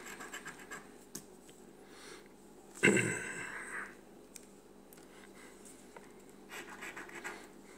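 Hands handle and rub a paper lottery ticket.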